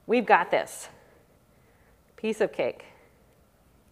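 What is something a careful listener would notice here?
A woman speaks calmly and closely, as if into a microphone.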